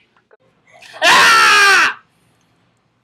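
A young woman shouts loudly close to a microphone.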